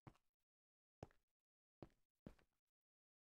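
Blocks are broken and placed with soft, short taps.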